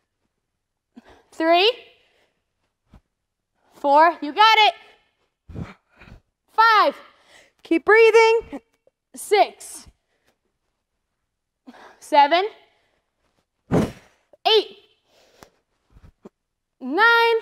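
A young woman calls out loudly in short, strained bursts.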